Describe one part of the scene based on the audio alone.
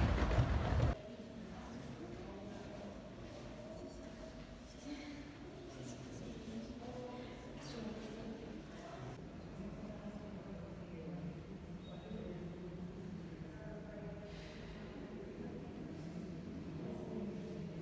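Quiet voices murmur in a large, hushed room.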